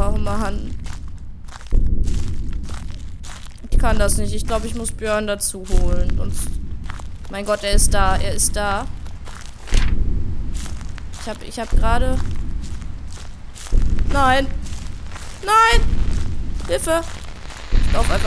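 A young woman talks quietly and unevenly close to a microphone.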